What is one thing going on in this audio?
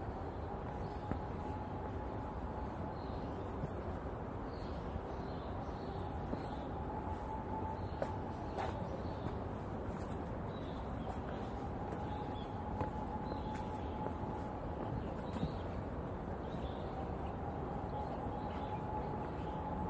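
Footsteps scuff steadily on a paved path.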